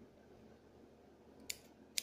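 Scissors snip through hair close by.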